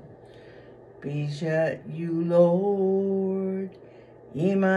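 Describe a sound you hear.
An elderly woman speaks up close in a drawn-out, singing voice.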